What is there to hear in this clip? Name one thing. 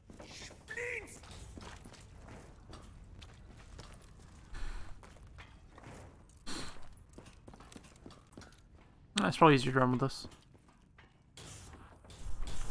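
A young man talks quietly into a microphone.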